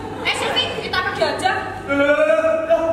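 A young woman speaks with animation on a stage in an echoing hall.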